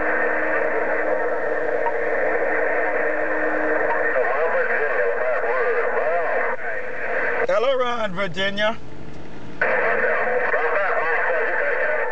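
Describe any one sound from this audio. A radio crackles with loud, steady static hiss.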